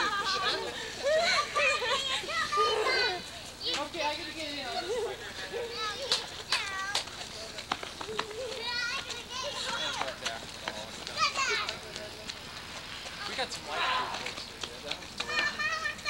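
Children shout and squeal playfully outdoors nearby.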